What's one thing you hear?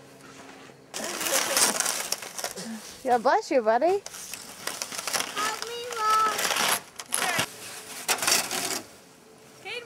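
A plastic sled scrapes and swishes over snow.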